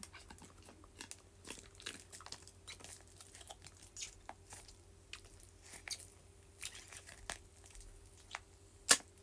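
A young woman sips a drink through a straw up close, with soft slurping sounds.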